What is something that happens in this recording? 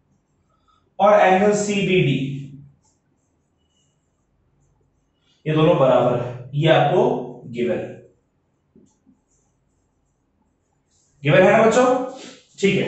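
A man speaks clearly and explains at a steady pace, in short bursts with pauses.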